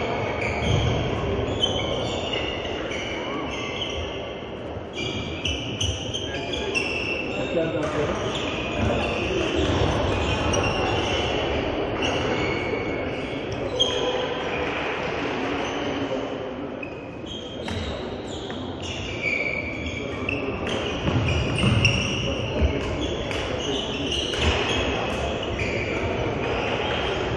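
Shoes squeak sharply on a sports floor.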